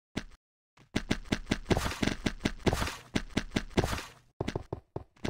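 A game block crunches and scrapes steadily as it is broken.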